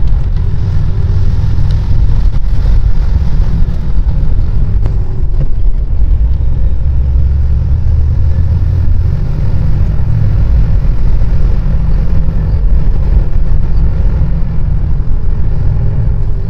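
A heavy vehicle's engine rumbles steadily as it drives.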